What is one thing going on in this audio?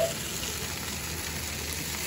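Metal tongs clack against a grill rack.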